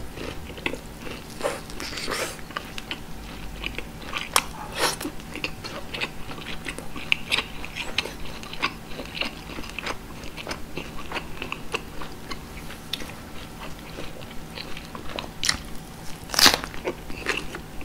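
A man chews food noisily and wetly, close to a microphone.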